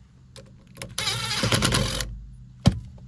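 A cordless power screwdriver whirs briefly.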